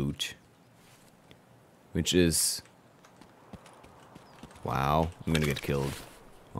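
A young man speaks animatedly and close into a microphone.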